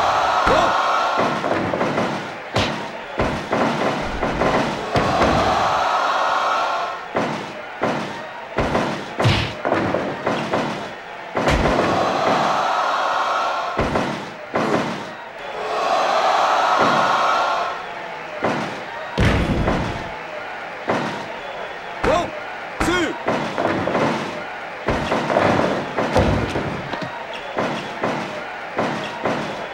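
Heavy thuds of bodies slamming onto a wrestling mat sound again and again.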